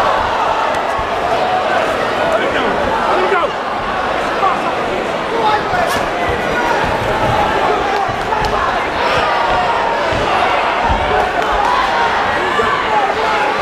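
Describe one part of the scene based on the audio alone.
Boxing gloves thud against bodies in quick punches.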